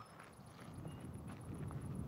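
A pitchfork scrapes through dry ground.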